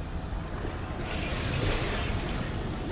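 A glowing portal hums and crackles with energy.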